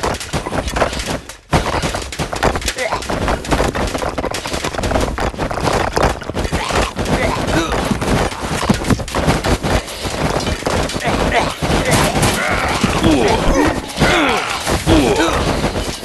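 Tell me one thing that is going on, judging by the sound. Weapons clash and strike in a crowded battle.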